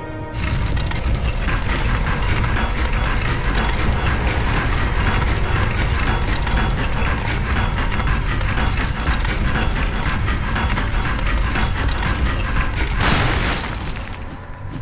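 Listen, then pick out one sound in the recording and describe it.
Loud, dense orchestral music plays.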